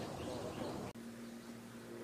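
A putter taps a golf ball softly.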